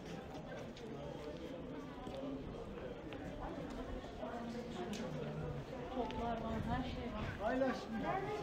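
Men and women chat casually nearby.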